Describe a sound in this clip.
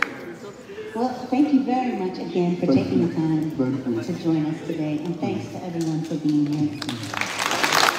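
A woman speaks calmly into a microphone, heard through loudspeakers in a large echoing hall.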